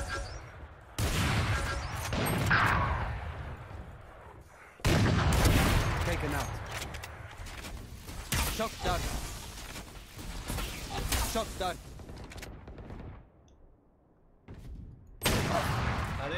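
A sniper rifle fires with a loud, booming crack.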